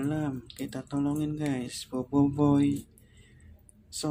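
Water swishes and splashes as a hand stirs it.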